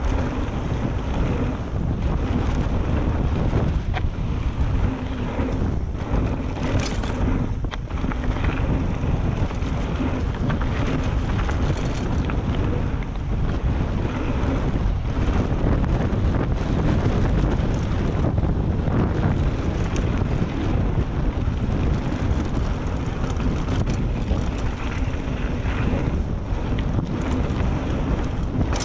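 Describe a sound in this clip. A bicycle chain and frame clatter over bumps.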